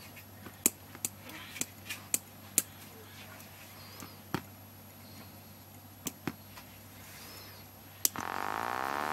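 Small buttons click sharply under a finger.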